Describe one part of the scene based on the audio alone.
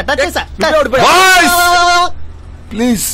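Men shout and scream in panic.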